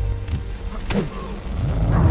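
A fist strikes a body with a heavy thud.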